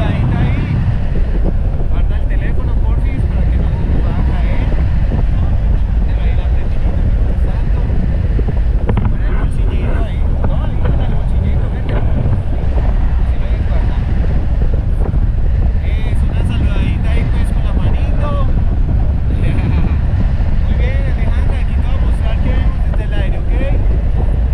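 A man talks calmly close by, over the wind.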